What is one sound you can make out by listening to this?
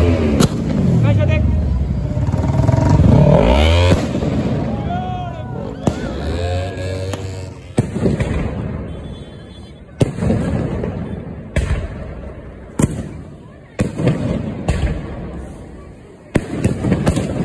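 Fireworks whistle as they shoot upward.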